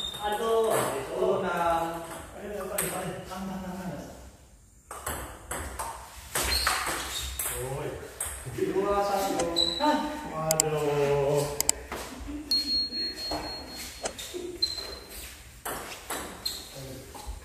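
A ping pong ball clicks against paddles and the table.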